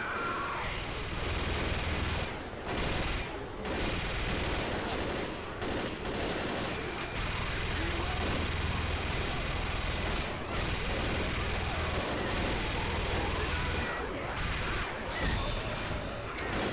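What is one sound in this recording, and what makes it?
A heavy machine gun fires in rapid, steady bursts.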